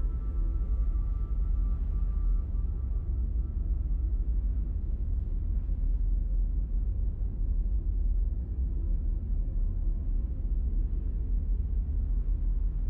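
A spaceship's engines rumble deeply and steadily.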